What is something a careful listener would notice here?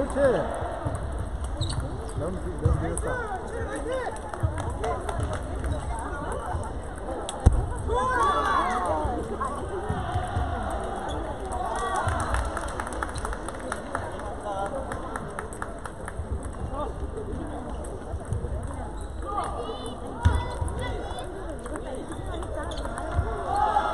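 Ping-pong balls click on paddles and tables in a large echoing hall.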